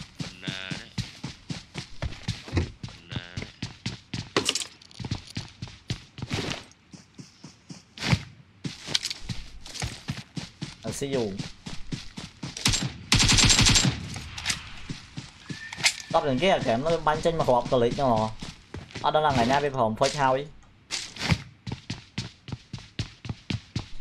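Footsteps thud rapidly on wooden floors and ground.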